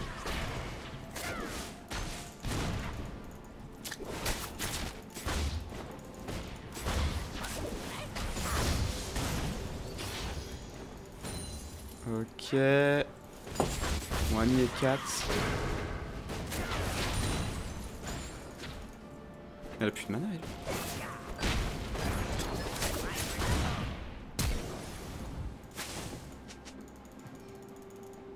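Game spell effects crackle, zap and explode in rapid bursts.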